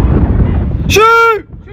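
A referee's whistle blows a sharp blast.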